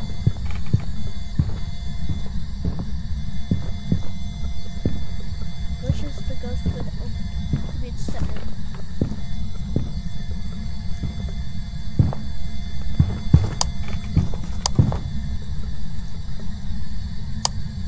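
Hands bump and rattle wooden slatted doors.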